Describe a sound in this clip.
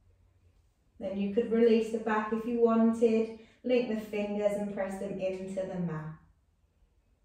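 A woman speaks calmly, giving instructions close by.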